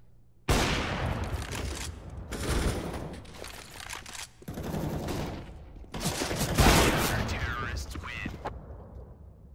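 Gunshots ring out and echo.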